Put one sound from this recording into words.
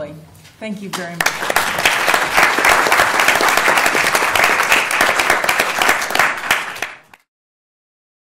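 An audience applauds loudly, then the sound stops.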